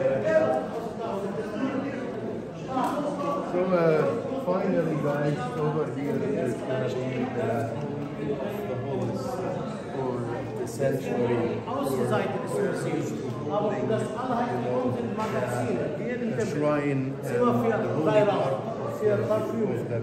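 A man speaks close by with animation, in an echoing stone hall.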